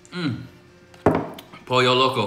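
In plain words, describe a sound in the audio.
A glass bottle knocks down onto a wooden table.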